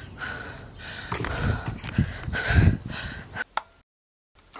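A young woman talks breathlessly and with animation, close by, outdoors in wind.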